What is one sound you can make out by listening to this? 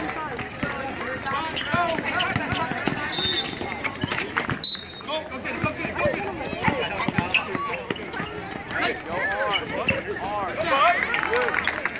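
Sneakers squeak and patter on an asphalt court.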